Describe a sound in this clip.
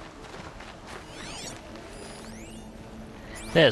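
A soft chime rings out as a plant is picked.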